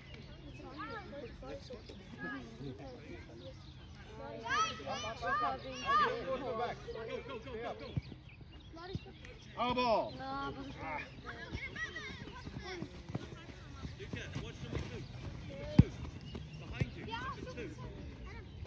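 Children shout and call out to each other outdoors.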